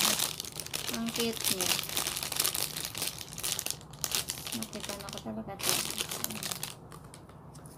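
A plastic bag crinkles and rustles in a woman's hands.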